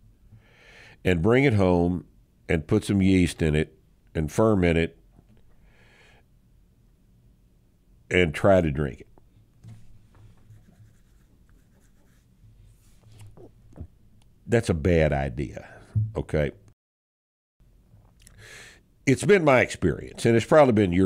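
A middle-aged man speaks calmly and close into a microphone, in bursts with pauses.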